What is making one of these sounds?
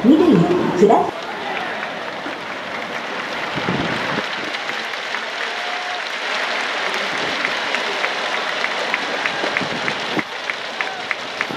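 A large crowd murmurs and cheers in the background.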